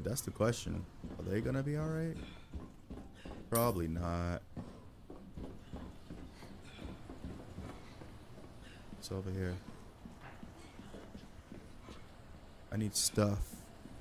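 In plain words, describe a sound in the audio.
Footsteps thud on metal stairs and a hard floor.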